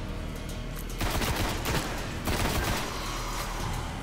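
Rapid gunshots fire in short bursts.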